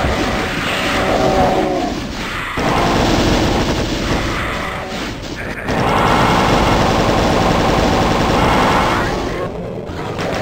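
A weapon fires rapid buzzing energy bursts.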